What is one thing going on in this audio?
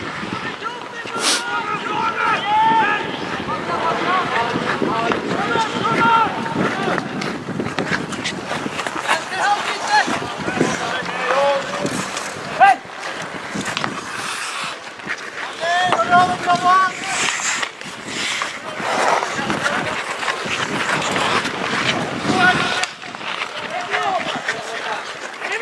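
Players shout to each other across an open outdoor rink.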